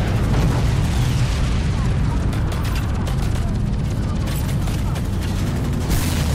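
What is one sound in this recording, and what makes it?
A helicopter's gun fires in rapid bursts.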